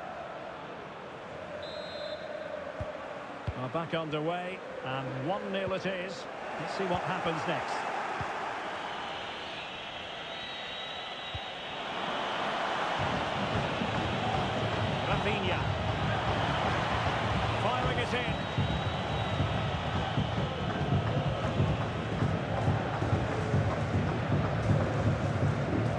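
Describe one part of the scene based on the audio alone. A large stadium crowd roars and cheers, growing louder.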